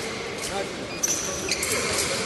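Fencing blades clash and scrape together in a large echoing hall.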